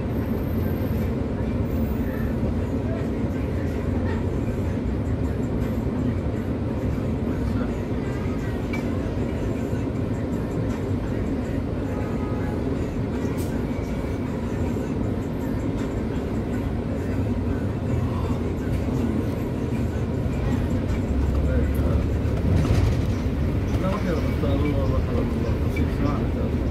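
Busy city traffic hums and passes by.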